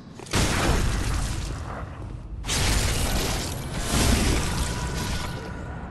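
A blade slashes and strikes flesh with heavy impacts.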